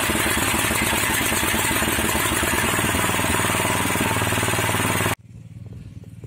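The single-cylinder petrol engine of a walk-behind tractor idles.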